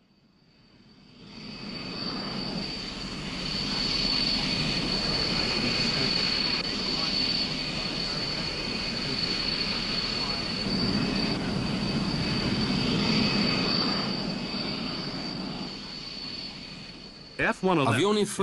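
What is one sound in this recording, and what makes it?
A jet engine roars with a steady high whine.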